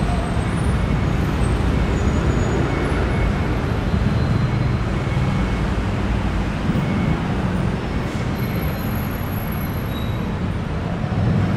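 Heavy city traffic idles and rumbles nearby.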